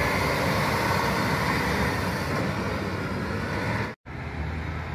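A bus engine rumbles as the bus pulls away.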